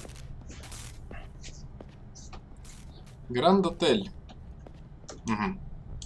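Footsteps run on hard pavement.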